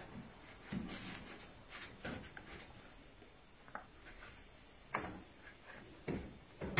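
A cloth rubs and wipes against a metal surface.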